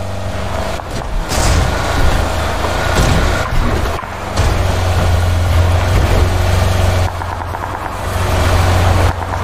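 A car engine rumbles steadily as the car drives over rough ground.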